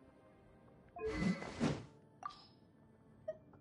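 A sword whooshes as it is drawn with a ringing swish.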